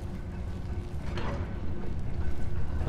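A heavy metal door grinds open.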